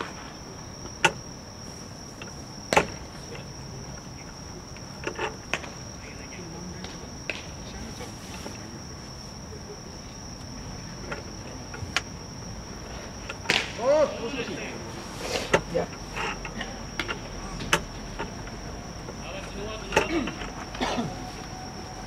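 A baseball smacks into a catcher's mitt with sharp claps, outdoors.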